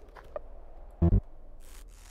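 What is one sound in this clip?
A menu opens with a low electronic thump.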